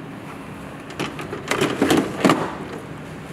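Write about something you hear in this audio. A plastic water tank slides and clunks into a housing.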